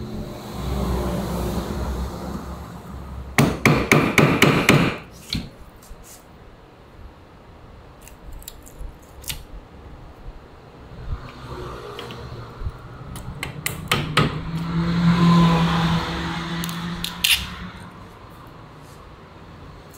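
A chisel scrapes and pares wood.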